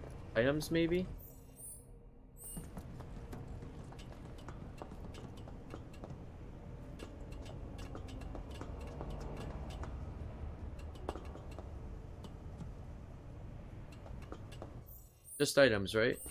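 Footsteps clank on metal walkways.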